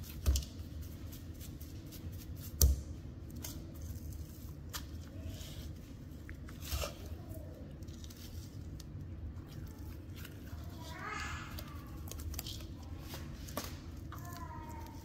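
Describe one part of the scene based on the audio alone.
Raw meat squelches and slaps as hands squeeze it in a bowl.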